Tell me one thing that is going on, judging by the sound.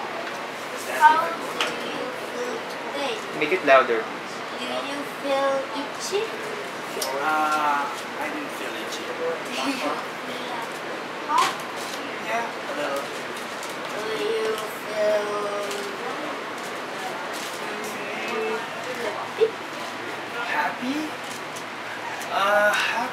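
A boy talks and reads out nearby.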